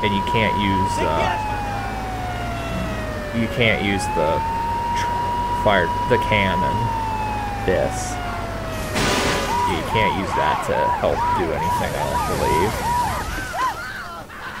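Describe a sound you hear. A fire truck engine rumbles low.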